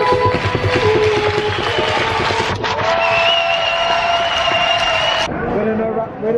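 Music plays over loudspeakers in a large echoing arena.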